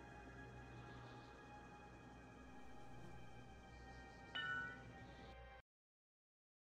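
Soft, dark ambient music plays quietly.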